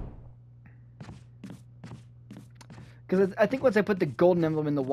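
Footsteps run on a hard floor.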